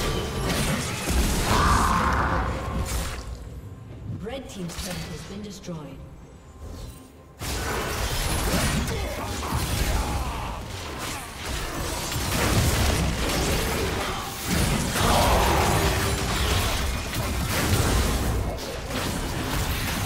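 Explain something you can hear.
Magic blasts crackle and boom in a fast fight.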